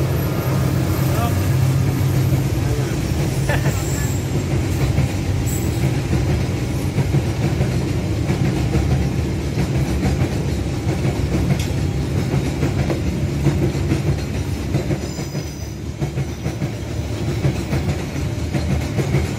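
Wheels clatter rhythmically over rail joints.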